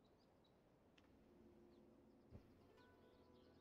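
A bright chime rings as a reward is claimed.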